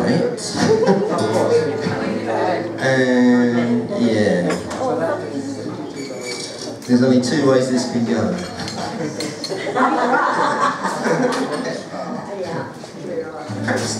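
A small band plays an upbeat acoustic tune in a room.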